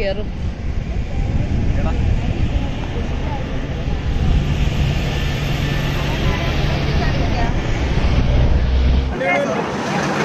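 Wind buffets the microphone with a low steady roar.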